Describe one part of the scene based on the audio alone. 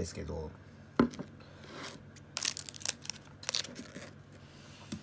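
A plastic cup crinkles and taps as it is handled.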